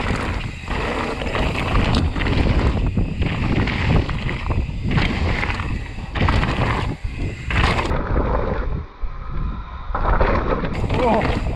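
A bicycle frame clatters and rattles over bumps.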